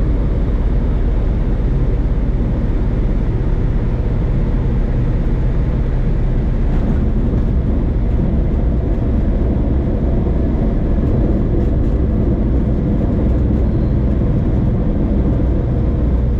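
Tyres rumble along a runway.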